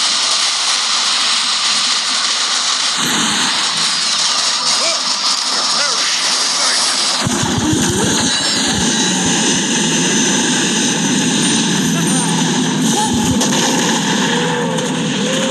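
Rapid gunfire and laser blasts crackle.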